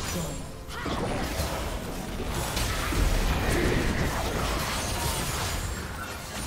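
Spell effects whoosh and crackle in a busy video game battle.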